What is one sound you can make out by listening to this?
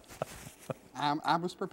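Another middle-aged man speaks cheerfully, close to a microphone.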